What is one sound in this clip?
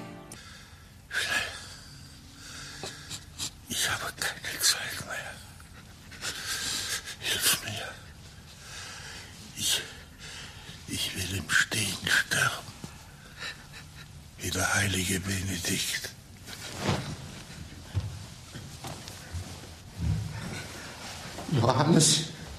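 An elderly man breathes heavily and rasps in his sleep.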